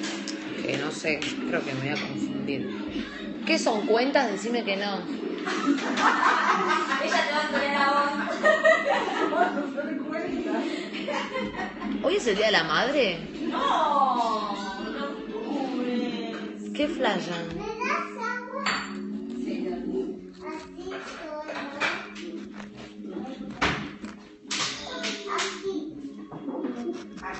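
A young woman talks with animation close to a phone microphone.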